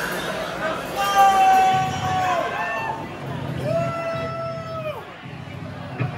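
A man sings long, bending notes into a microphone.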